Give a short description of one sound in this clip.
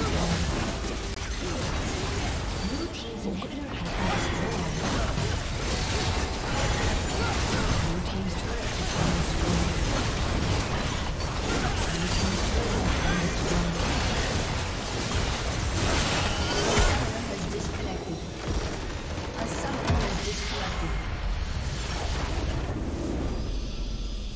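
Game spells crackle and clash in a busy fight.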